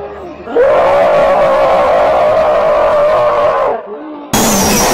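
A woman screams loudly and shrilly.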